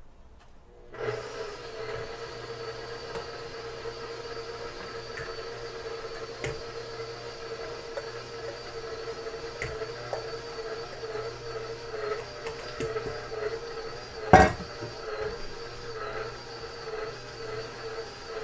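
A stand mixer whirs steadily.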